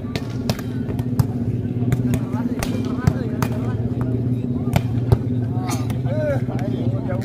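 A ball is kicked with sharp thumps.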